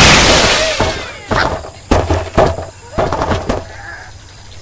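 Wooden blocks crash and clatter as a structure collapses.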